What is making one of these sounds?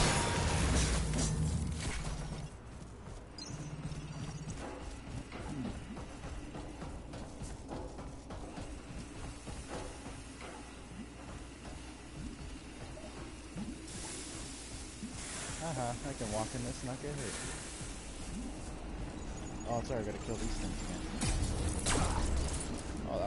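Heavy armoured footsteps thud quickly over hard ground.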